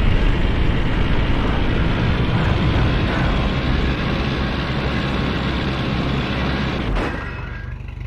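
An open military jeep's engine runs as the jeep drives over rough ground.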